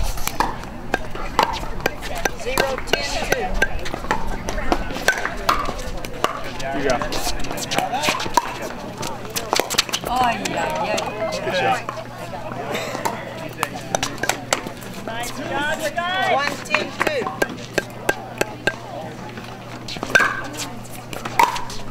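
Paddles pop sharply against a plastic ball, over and over, in an echoing indoor hall.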